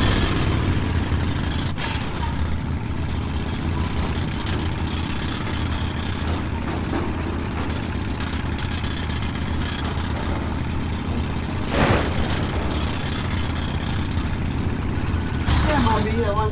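A rail cart rumbles steadily along metal tracks in an echoing tunnel.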